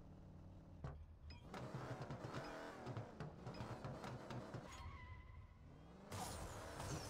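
A car engine revs loudly before a launch.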